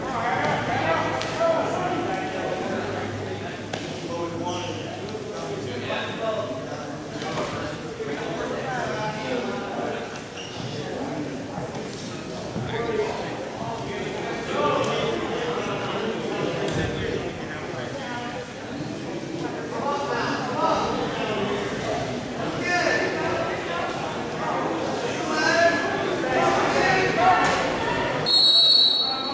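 Wrestlers thud and scuffle on a mat.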